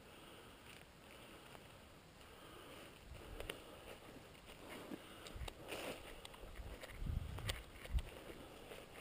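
Branches snap and rustle as a person pushes through brush.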